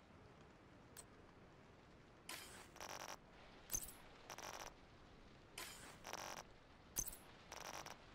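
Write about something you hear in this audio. Short electronic menu clicks sound a few times.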